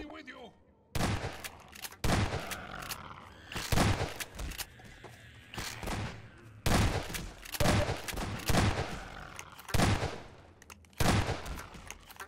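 A shotgun fires loud blasts, one after another.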